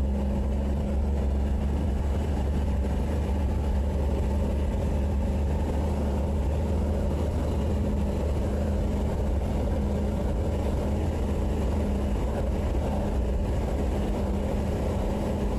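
The engine of a 1955 Chevrolet drones as the car cruises along a paved road.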